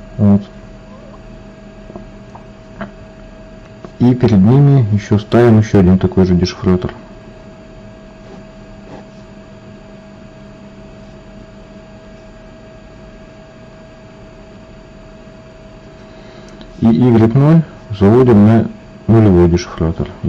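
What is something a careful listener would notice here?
A ballpoint pen scratches softly on paper.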